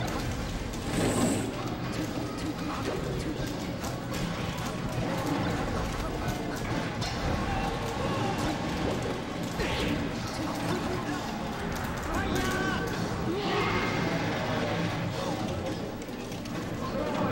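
Video game fighting sounds play with rapid hits and blasts.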